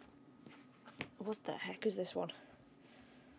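A young woman speaks briefly with animation into a microphone.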